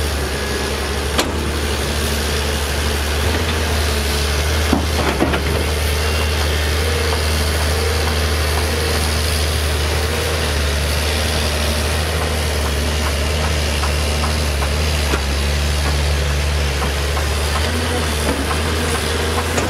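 A diesel excavator engine rumbles steadily.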